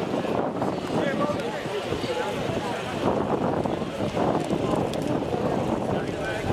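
Several young men and women chatter and call out nearby outdoors.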